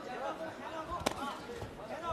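A gloved punch lands with a sharp slap.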